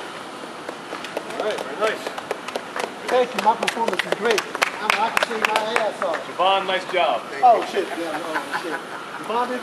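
A group of adults talk close by, outdoors.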